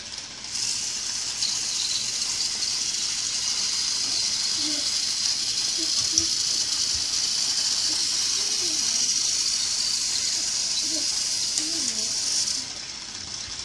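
A battery toy train whirs steadily as it runs along its track.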